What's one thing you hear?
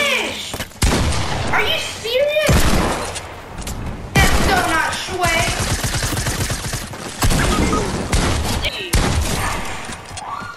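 Shotgun blasts boom one after another.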